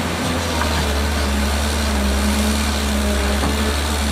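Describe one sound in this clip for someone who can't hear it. A bulldozer engine rumbles steadily nearby.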